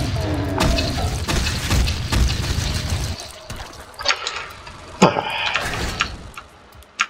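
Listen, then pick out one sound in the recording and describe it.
A shotgun fires with loud, booming blasts.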